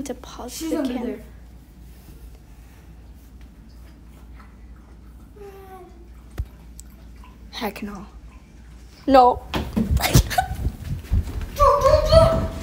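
A young child talks and calls out close by.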